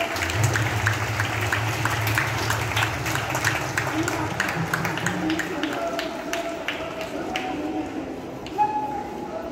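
A crowd of children and adults chatters at a distance outdoors.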